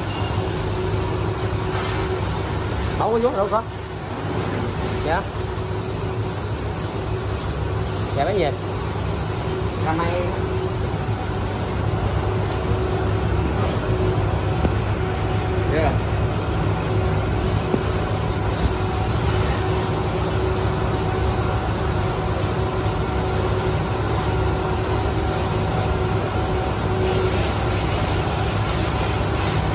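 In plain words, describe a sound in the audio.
A spray gun hisses as it sprays paint.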